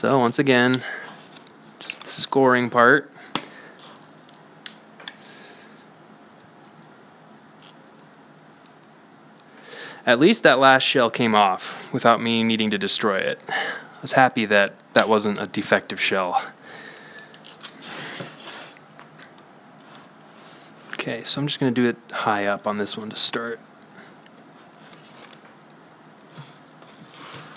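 A utility knife scrapes and cuts through stiff foam.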